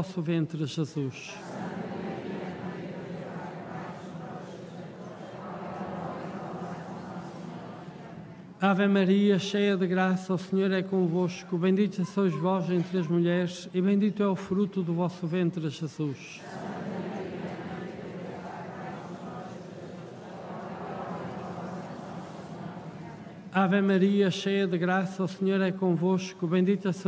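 An elderly man sings a chant through a microphone in a large echoing hall.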